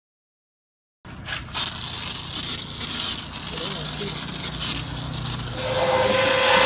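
A spray bottle hisses as foam is sprayed in short bursts.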